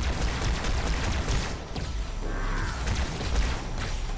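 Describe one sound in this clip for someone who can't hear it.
A plasma blast explodes with a crackling burst.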